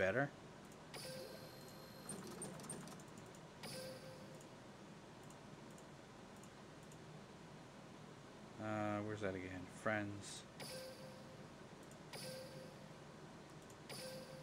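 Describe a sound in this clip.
Short electronic chimes play now and then.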